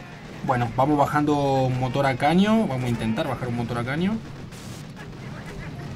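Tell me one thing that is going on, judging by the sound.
Explosions boom and guns rattle in a battle.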